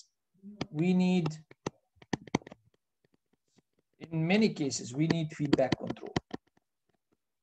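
A stylus taps and scratches on a tablet.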